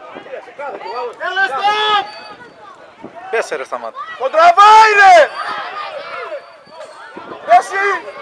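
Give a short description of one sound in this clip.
Men shout loudly nearby.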